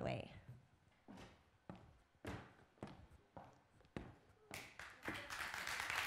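High heels click on a stage.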